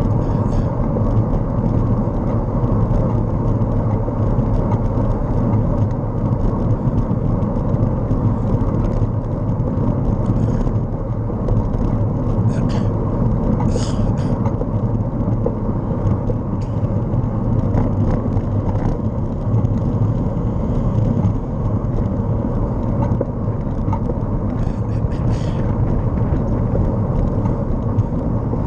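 A vehicle's engine hums steadily as it drives along a road.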